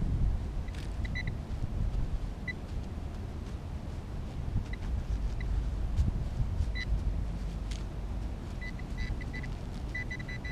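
Hands crumble and rustle loose soil.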